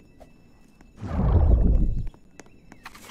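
An explosion booms loudly and briefly.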